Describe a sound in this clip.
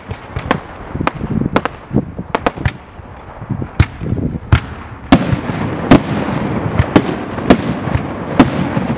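Fireworks crackle and sizzle as sparks spread.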